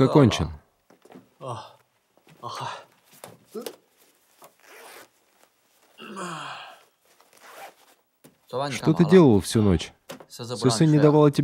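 A young man speaks close by in a calm, casual voice.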